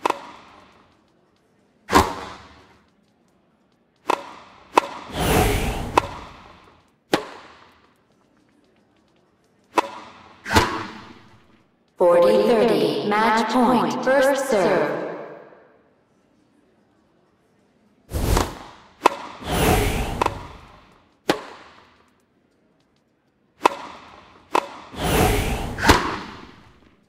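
Tennis balls are struck with sharp pops in a game.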